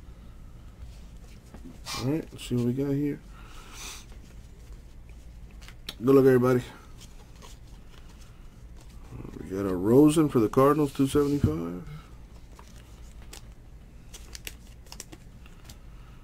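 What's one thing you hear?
Trading cards rustle and flick softly in hands.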